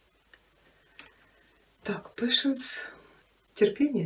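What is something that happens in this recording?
A playing card is laid down on a cloth.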